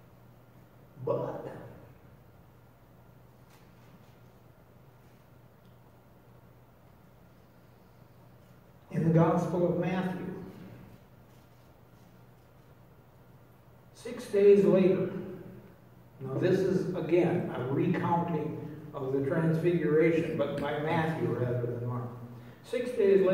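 An elderly man speaks calmly through a microphone in a large echoing hall, with long pauses.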